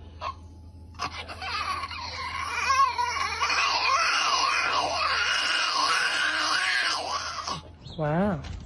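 A small dog howls and yowls loudly up close.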